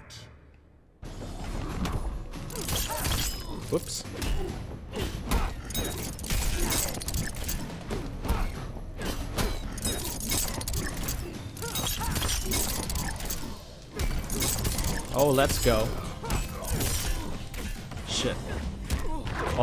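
Punches and kicks land with sharp smacks and thuds in a fast fight.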